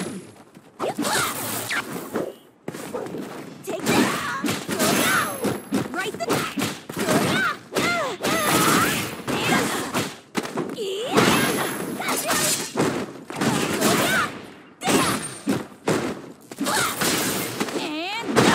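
Fighters grunt and shout as they attack.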